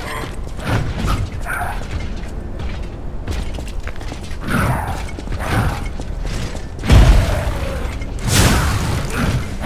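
A sword swishes and slashes.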